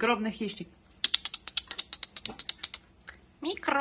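A puppy laps food from a bowl with quick clicking sounds.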